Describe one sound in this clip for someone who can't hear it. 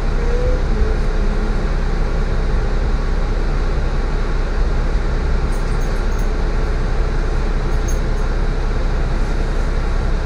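A tram rolls past on rails outside.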